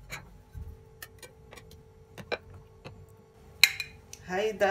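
A metal spatula clinks against a glass dish.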